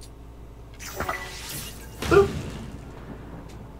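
Flames burst up with a roaring whoosh.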